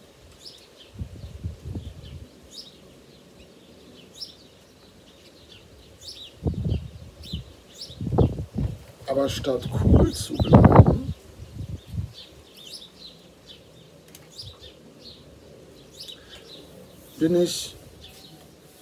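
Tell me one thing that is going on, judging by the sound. A middle-aged man speaks calmly and slowly, close by.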